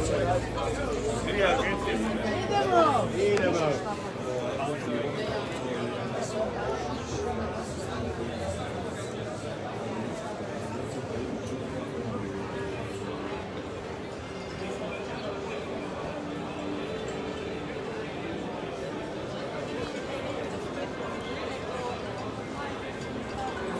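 A crowd chatters steadily outdoors.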